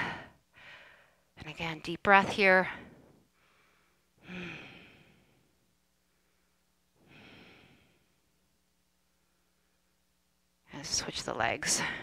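A young woman speaks calmly and clearly, close by, in short phrases with pauses.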